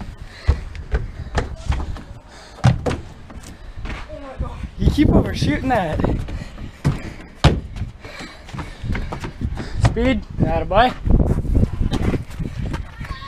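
Footsteps thud and scuff on a wooden deck.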